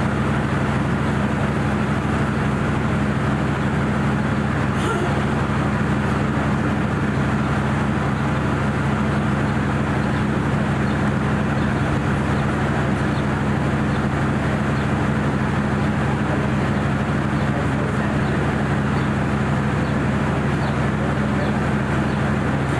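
A freight train rumbles steadily past, its wagons clattering over the rails.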